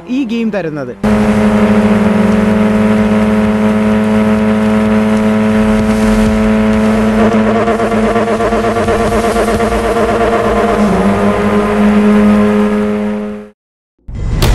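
A race car engine roars at high speed, steady and strong.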